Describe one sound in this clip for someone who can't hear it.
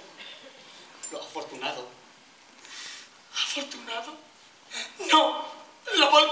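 A young man speaks quietly through a body microphone.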